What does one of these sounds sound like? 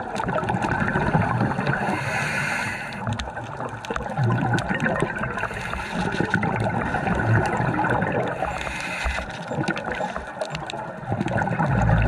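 Air bubbles rise and gurgle underwater.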